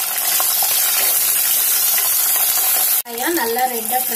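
A spatula scrapes and stirs in a pot.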